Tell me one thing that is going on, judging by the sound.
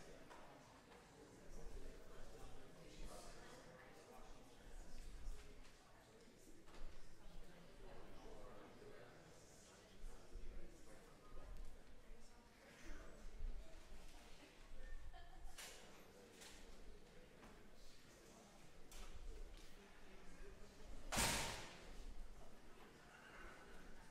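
An audience chatters quietly in a large echoing hall.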